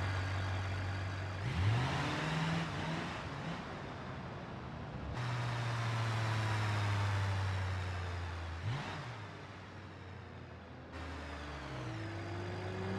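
A pickup truck's engine hums steadily, dipping and rising in pitch as it shifts gears.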